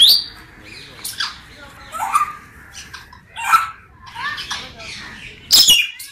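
Parrots whistle and squawk in short, shrill bursts.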